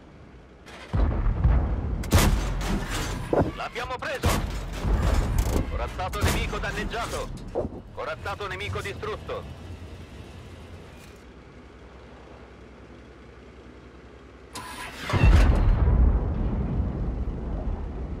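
A tank cannon fires with a loud, deep boom.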